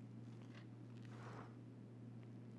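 An office chair creaks as a man sits down.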